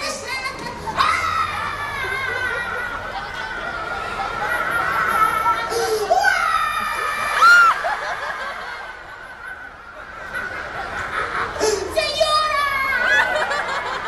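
A man speaks with animation through a loudspeaker in a large echoing hall.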